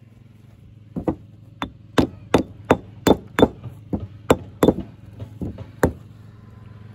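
A hammer chips and knocks at stone in sharp, quick blows.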